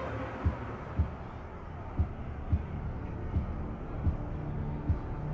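Soft low thuds sound at a steady pace as selections change in a game's interface.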